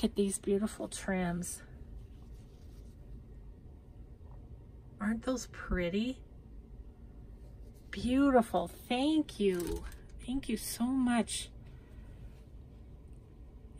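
Fabric ribbons rustle softly between fingers.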